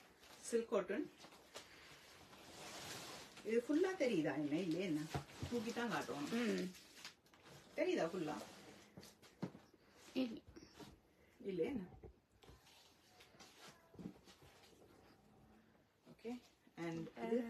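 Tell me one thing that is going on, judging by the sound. Cloth rustles as a woman handles fabric.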